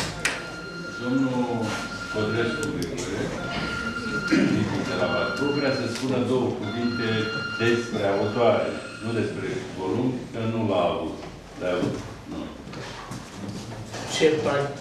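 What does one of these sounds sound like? An elderly man speaks to an audience through a microphone in an echoing hall.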